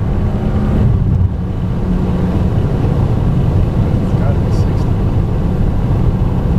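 Tyres rumble on rough asphalt.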